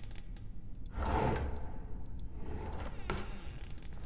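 A wooden drawer slides open.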